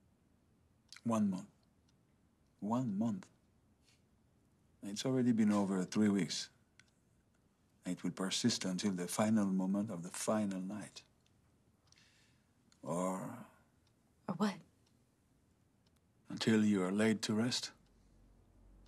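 A middle-aged man speaks calmly and seriously, close by, in short phrases with pauses.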